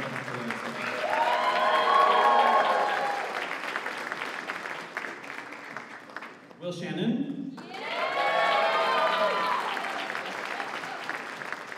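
A crowd of young people cheers and whoops.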